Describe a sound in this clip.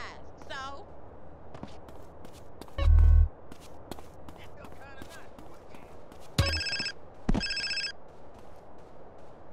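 Footsteps run and thud on a hard roof.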